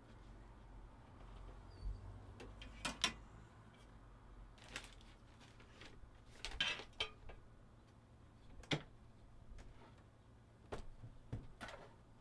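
Plastic knocks and rattles as something is handled.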